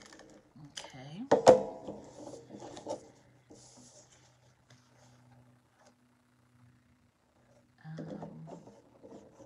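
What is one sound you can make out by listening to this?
Card paper slides and rustles against a table.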